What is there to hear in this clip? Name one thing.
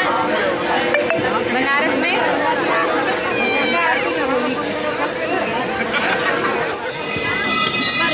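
A lively crowd chatters and cheers loudly nearby.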